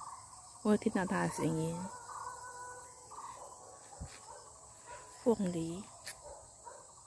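A middle-aged woman talks close to the microphone.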